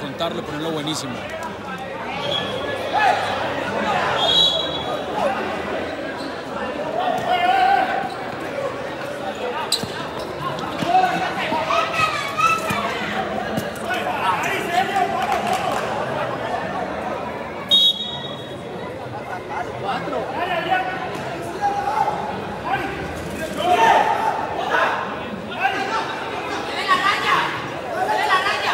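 A large crowd cheers and chatters outdoors.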